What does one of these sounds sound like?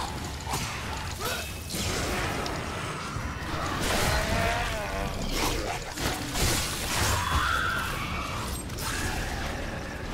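Creatures growl and shriek during a fight.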